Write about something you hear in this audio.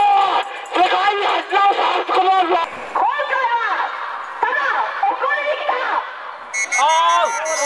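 A crowd of men and women chants loudly in rhythm outdoors.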